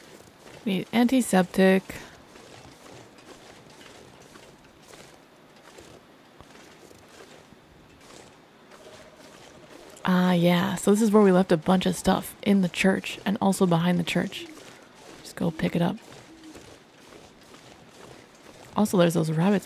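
A young woman talks into a close microphone in short bursts.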